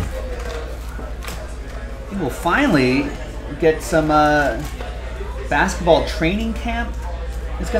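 Cardboard scrapes as packs are pulled from a box.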